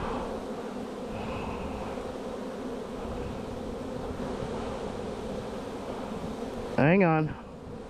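Bees buzz in a dense, steady hum close by.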